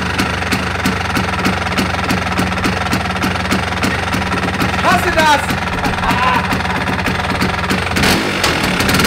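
A scooter engine idles with a steady, rapid putter.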